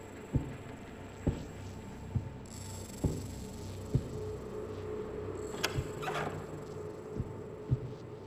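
Footsteps thud slowly and evenly on a hard floor.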